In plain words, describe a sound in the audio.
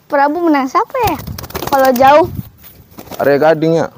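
A pigeon flaps its wings as it is released.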